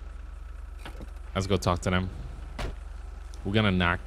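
A car door shuts.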